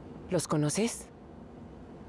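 A woman speaks quietly and closely.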